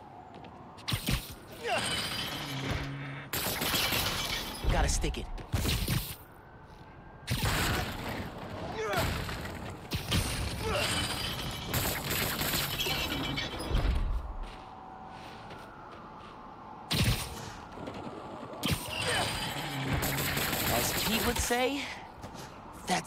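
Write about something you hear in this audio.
Webs zip and whoosh in quick bursts.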